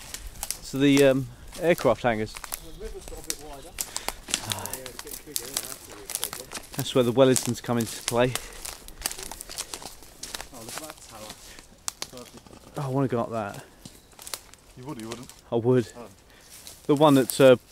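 Footsteps crunch through dry twigs and undergrowth.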